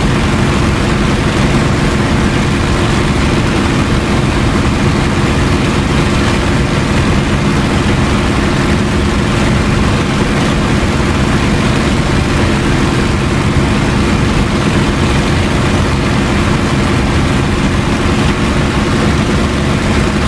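A propeller aircraft engine drones loudly and steadily.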